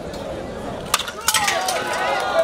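Wooden boards crack and snap as a kick breaks them.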